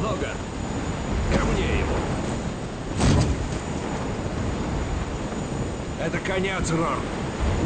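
Wind roars loudly past an open aircraft door.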